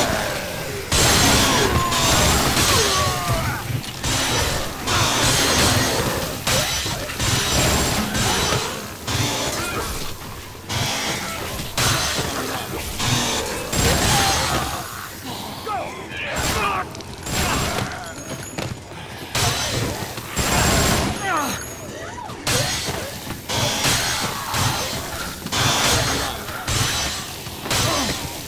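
A crowd of zombies groans and moans.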